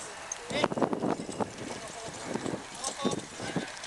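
Carriage wheels rattle and creak.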